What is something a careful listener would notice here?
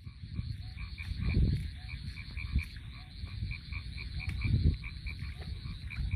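Feet slosh through shallow water.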